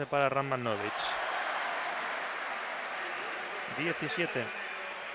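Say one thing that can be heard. A crowd cheers loudly after a basket.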